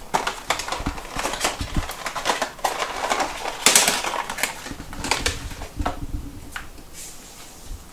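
A sponge scrubs a counter.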